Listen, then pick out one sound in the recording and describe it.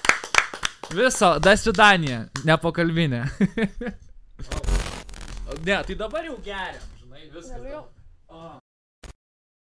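A man laughs and talks with animation close to a microphone.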